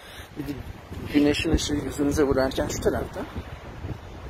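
An elderly woman speaks close by.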